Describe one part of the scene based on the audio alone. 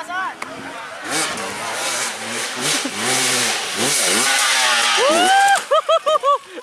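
A dirt bike engine revs loudly and roars past.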